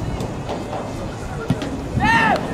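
A football is kicked hard with a dull thud.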